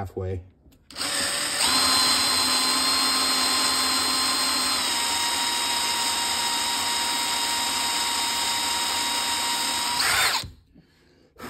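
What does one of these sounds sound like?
A cordless drill whirs steadily at high speed.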